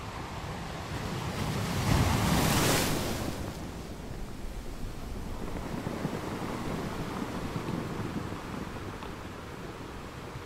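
Ocean waves roll in and crash against rocks.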